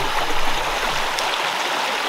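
A stream of water babbles over stones.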